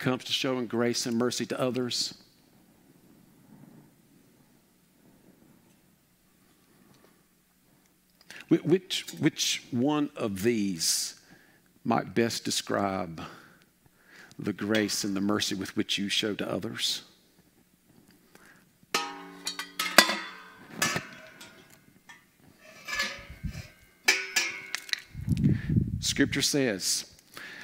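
A middle-aged man speaks with animation through a headset microphone in an echoing hall.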